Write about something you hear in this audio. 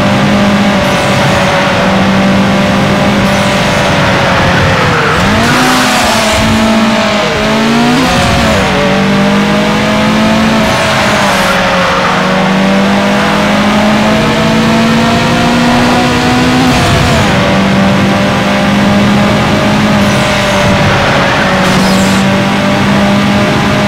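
A race car engine roars steadily, its pitch rising and falling with gear shifts.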